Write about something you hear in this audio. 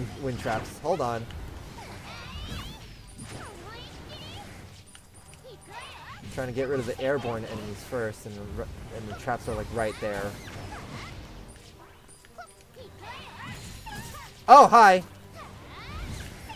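Video game attacks hit and burst with quick electronic impacts.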